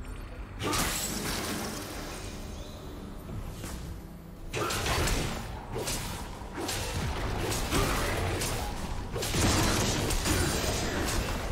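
Magical blasts and impacts crackle and boom in a fast game battle.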